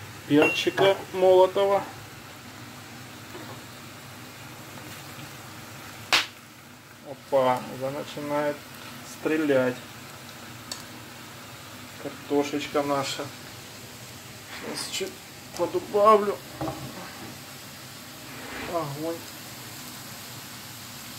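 Potatoes sizzle softly in a frying pan.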